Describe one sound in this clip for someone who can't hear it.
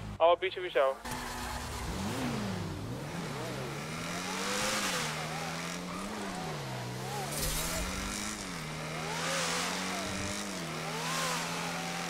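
A car engine revs and hums.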